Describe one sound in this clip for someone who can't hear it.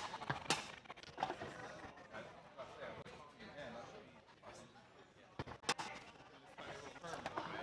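Foosball rods spin and rattle.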